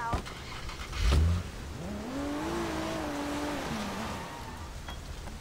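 A car engine starts and revs, then drives off.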